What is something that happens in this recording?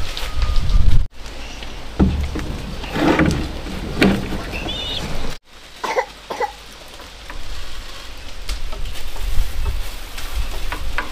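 Concrete blocks knock and scrape on a wooden board.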